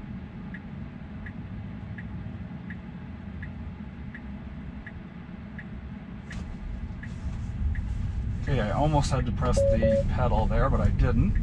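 A car's engine and tyres hum low and steady while driving.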